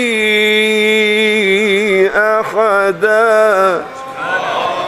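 A man chants in a long, wavering melody through a microphone in an echoing hall.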